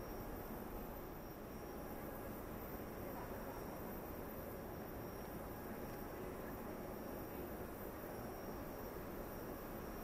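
A jet engine roars and whines steadily nearby.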